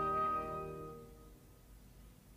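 A piano chord rings out and slowly fades away.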